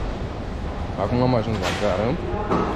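A young man talks close by, with animation.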